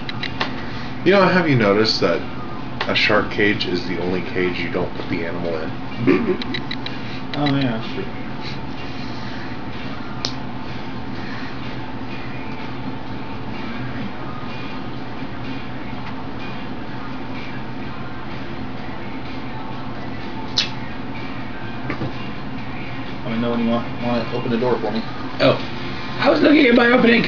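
A man talks casually and close by.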